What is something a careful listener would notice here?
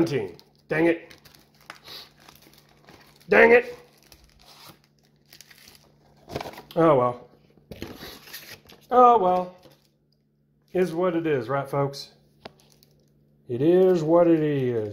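Playing cards and a cardboard deck box rustle and slide as hands handle them.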